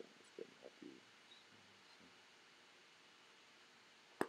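Book pages rustle softly.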